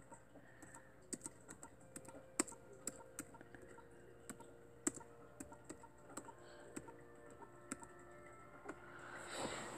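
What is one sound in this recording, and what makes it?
Fingers tap on a laptop keyboard in quick, uneven clicks.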